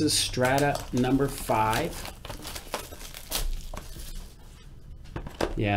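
Plastic wrapping crinkles and rustles as it is torn.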